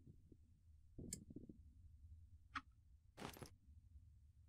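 A stone axe strikes rock with dull knocks.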